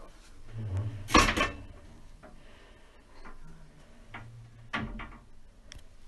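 A heavy metal door creaks and thuds shut.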